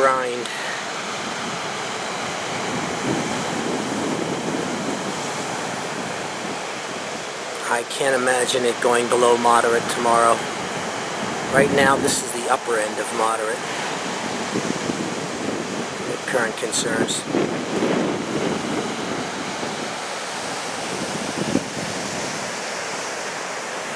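Ocean waves crash and wash onto a beach.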